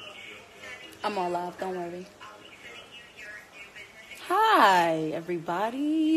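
A young woman sings loudly in a high, wavering voice.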